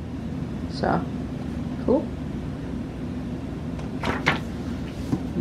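Paper rustles as it is handled close by.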